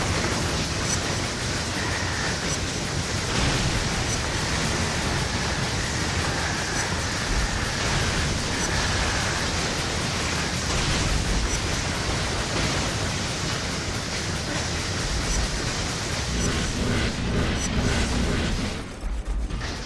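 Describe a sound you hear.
A video game plays loud fire bursts and explosions.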